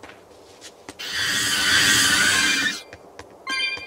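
A large creature's wings beat with a loud rushing whoosh.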